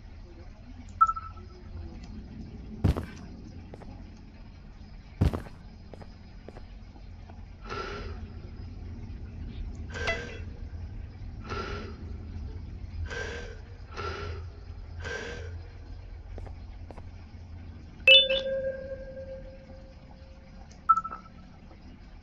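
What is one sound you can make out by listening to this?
A radio transmitter beeps briefly.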